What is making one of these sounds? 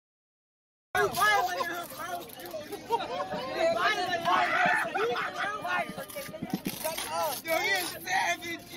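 Men and women cry out and clamour in agitation.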